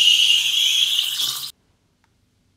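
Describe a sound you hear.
An espresso machine's steam wand hisses loudly.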